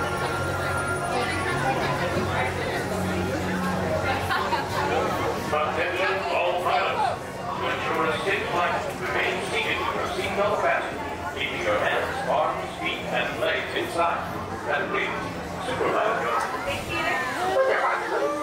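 A crowd of men, women and children chatters all around outdoors.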